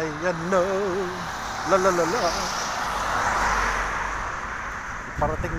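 A car speeds past close by.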